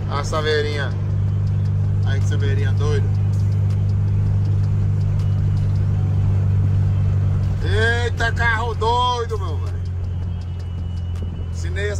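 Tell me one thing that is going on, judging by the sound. The air-cooled flat-four engine of a Volkswagen Beetle drones as the car cruises on a highway.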